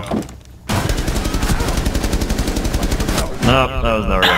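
A rifle fires in a rapid burst, close by.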